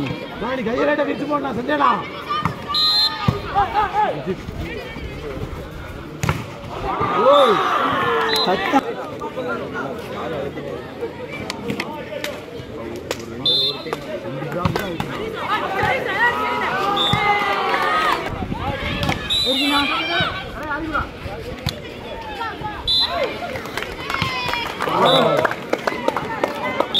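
A ball is struck with sharp slaps.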